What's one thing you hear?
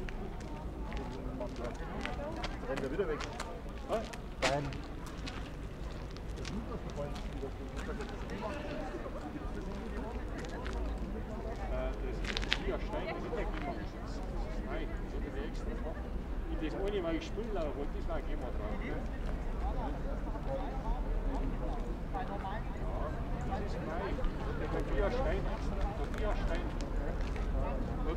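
Several adults talk nearby outdoors, their voices mixing.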